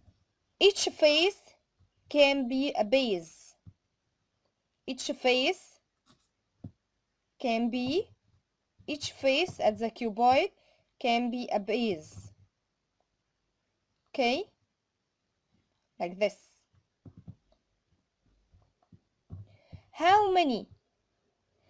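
A small cardboard box is turned over and set down on a hard surface.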